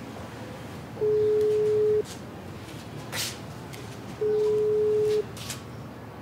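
A phone's ringing tone sounds through an earpiece, in two long beeps.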